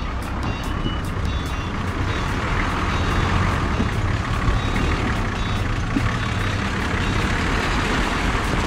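An off-road vehicle's engine rumbles steadily as it crawls through mud.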